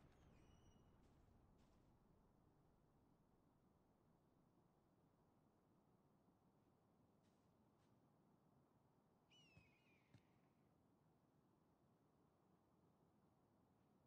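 Wind blows steadily across an open hillside.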